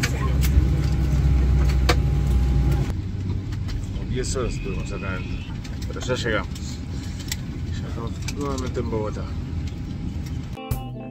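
An airplane cabin hums with a steady low engine drone.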